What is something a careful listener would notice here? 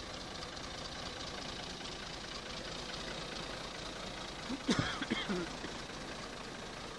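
A tractor engine runs with a steady rumbling chug outdoors.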